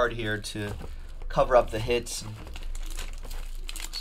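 Cardboard scrapes as a box is slid open.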